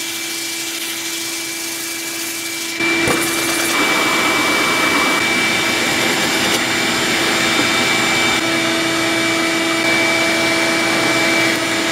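A drill press motor hums as it spins.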